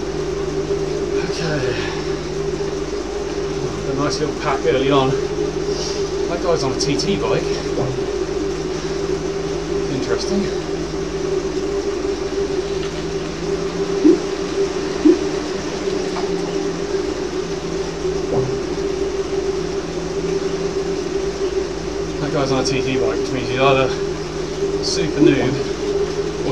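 A man talks casually and close to a microphone.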